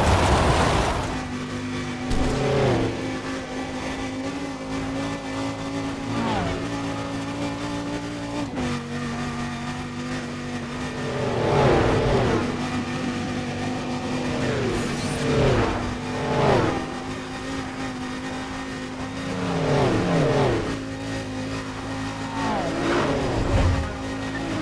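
A racing car engine roars at a steady high pitch.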